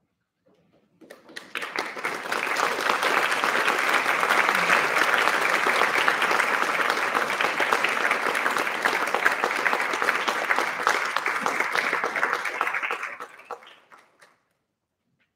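An audience applauds loudly in an echoing hall, then the applause dies away.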